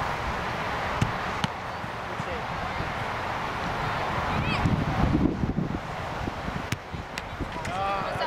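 A soccer ball is kicked with sharp thuds.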